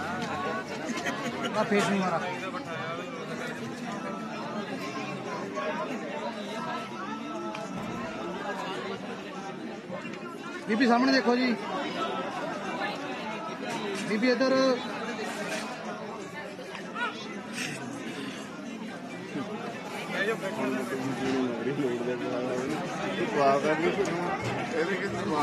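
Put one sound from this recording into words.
A crowd of men and women talk and chatter nearby.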